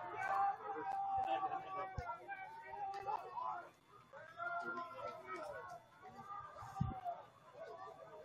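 Several young people shout and cheer outdoors at a distance.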